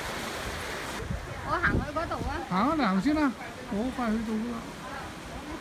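Waves wash over rocks nearby.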